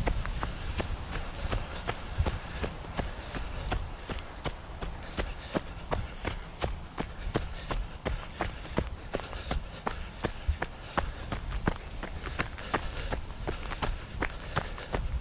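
Footsteps crunch steadily on dry leaves and gravel.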